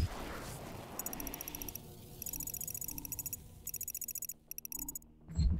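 Rapid, soft electronic ticks repeat in bursts.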